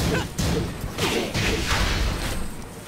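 A crackling energy blast whooshes out.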